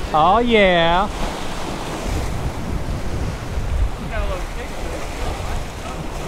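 Waves break and splash against rocks close by.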